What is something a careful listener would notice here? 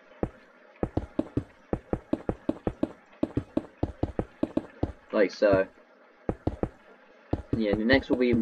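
Blocks are placed with quick, soft knocks in a rapid series.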